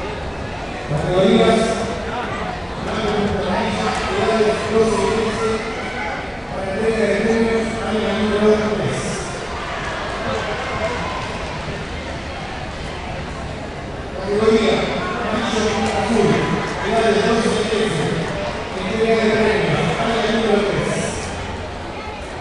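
Men and women nearby shout and cheer loudly in bursts.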